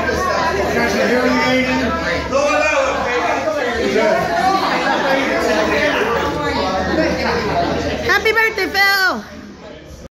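A group of people chatter in the room.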